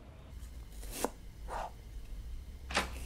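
A knife taps on a cutting board as food is chopped.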